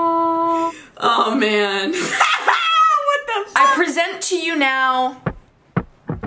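A young woman laughs and talks excitedly.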